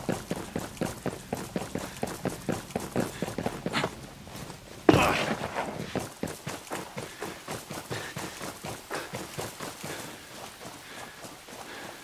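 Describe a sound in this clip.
Quick footsteps run steadily over hard ground and grass.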